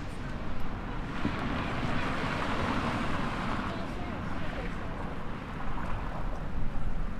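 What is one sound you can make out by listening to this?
Passing people chatter nearby.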